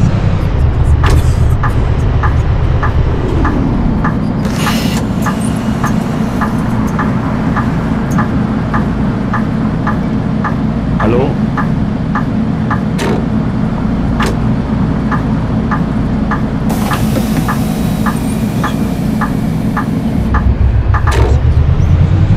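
A turn signal ticks steadily.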